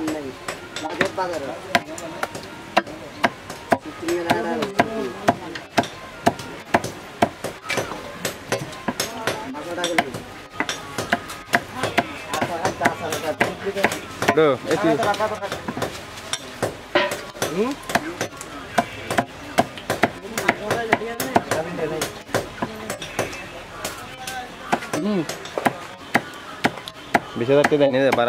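A heavy blade chops repeatedly into a wooden block with sharp, steady knocks.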